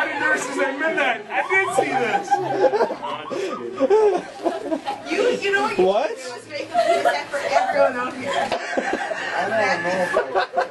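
Several young people talk and laugh loudly close by, in a lively group.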